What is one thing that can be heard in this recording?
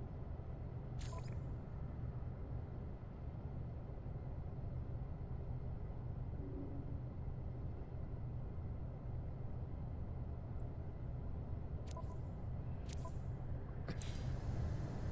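Short sharp clicks sound a few times.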